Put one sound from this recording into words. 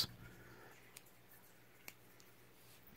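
A folding knife blade clicks shut.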